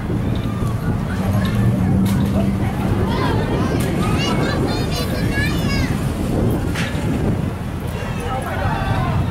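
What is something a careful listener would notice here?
A crowd of people chatter and call out outdoors.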